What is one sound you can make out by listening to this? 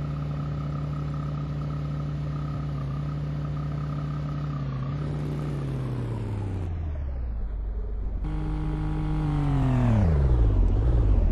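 A car engine hums steadily, then drops in pitch.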